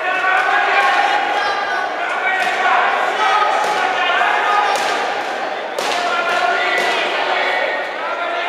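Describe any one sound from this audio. A crowd of spectators chatters and calls out in an echoing hall.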